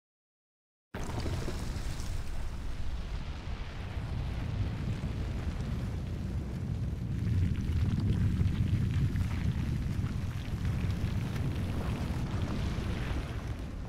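A deep, heavy rumble of grinding stone rolls on steadily.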